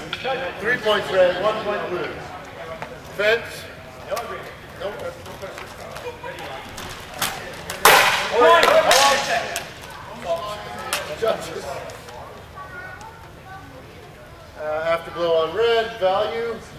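A man calls out loudly in a large echoing hall.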